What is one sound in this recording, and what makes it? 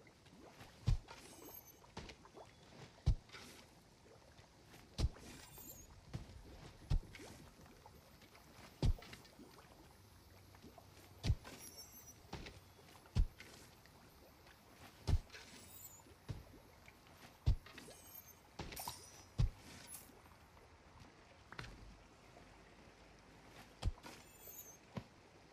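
Short tinkling chimes ring out now and then.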